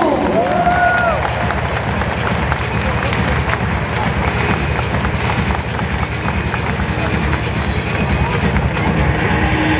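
A crowd claps in scattered applause.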